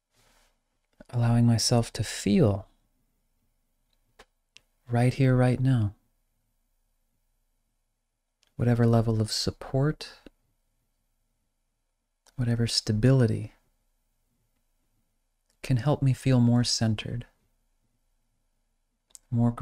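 A man speaks calmly and slowly, close to a microphone, with long pauses.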